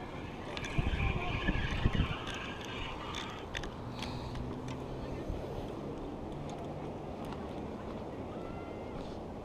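Wind buffets and rushes across the microphone outdoors.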